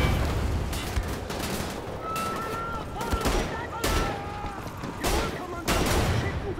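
A heavy gun fires in loud bursts.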